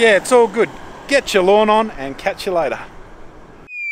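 A middle-aged man speaks cheerfully and close to the microphone, outdoors.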